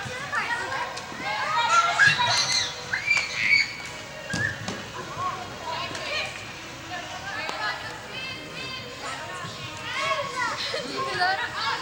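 Young women shout and call out to each other across a large echoing hall.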